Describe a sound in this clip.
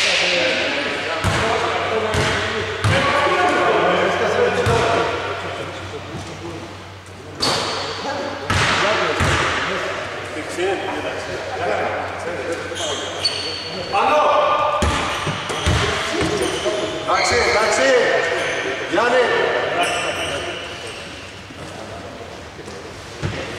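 Men call out and talk across a large echoing hall.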